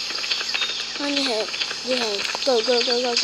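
A young child speaks close to a microphone.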